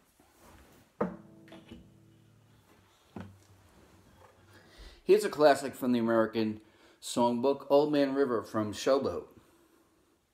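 An acoustic guitar is strummed in a few ringing chords.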